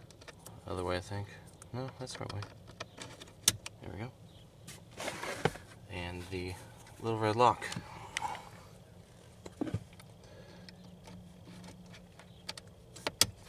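Small plastic parts click and rattle close by.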